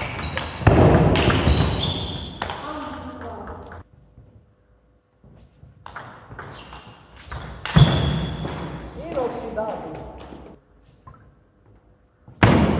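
A table tennis ball clicks back and forth off paddles and a table.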